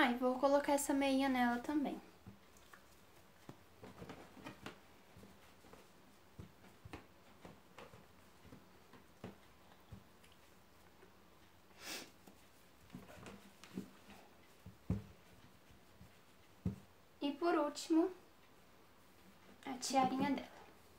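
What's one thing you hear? Soft fabric rustles and small objects knock as a doll is handled.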